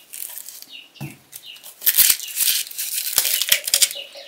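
A hand rustles onions in a wicker basket.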